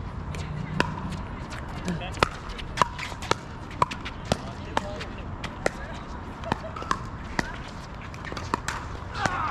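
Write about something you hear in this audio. Shoes squeak and scuff on a hard court.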